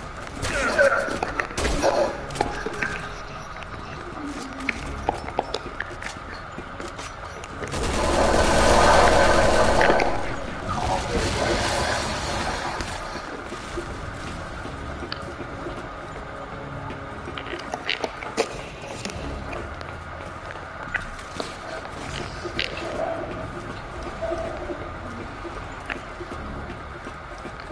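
Footsteps clank on metal floors and stairs.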